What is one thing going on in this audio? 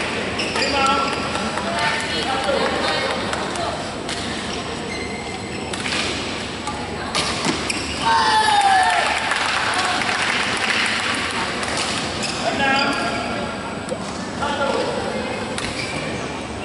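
Children call out and chatter in the background.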